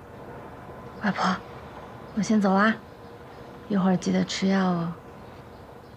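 A young woman speaks softly up close.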